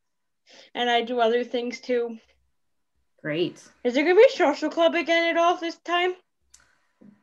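A girl talks with animation over an online call.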